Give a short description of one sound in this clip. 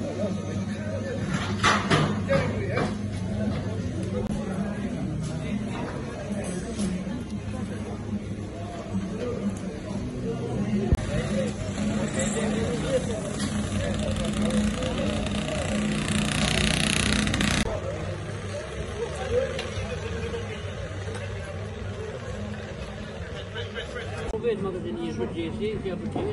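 Several men talk outdoors at a distance.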